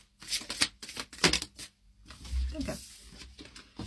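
A card slaps down onto a table.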